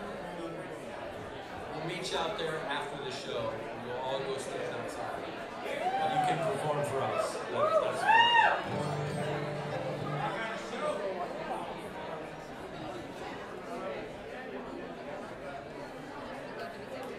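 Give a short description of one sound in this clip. A bluegrass band plays live.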